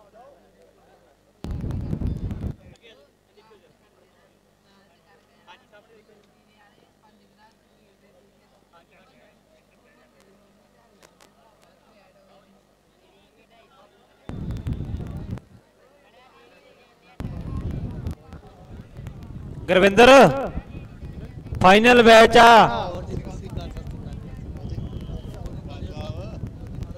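A crowd of men murmurs and talks outdoors.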